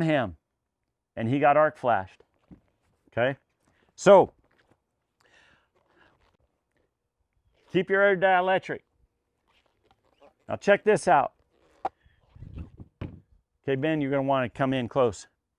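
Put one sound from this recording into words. A middle-aged man speaks calmly and clearly into a microphone, close by.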